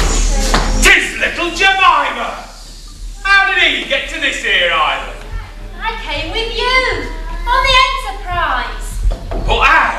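A young woman speaks in an echoing hall.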